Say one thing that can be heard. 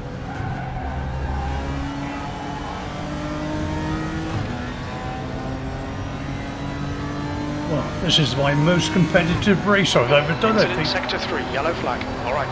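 A race car engine roars and climbs in pitch, dropping briefly as gears shift.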